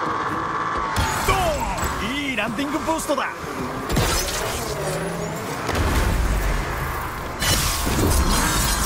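Loud crashes and bangs burst out.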